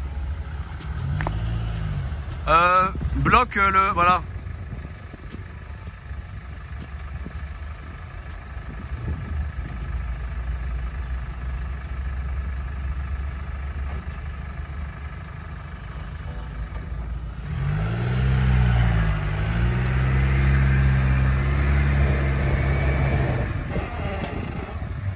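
A vehicle engine idles with a low rumble.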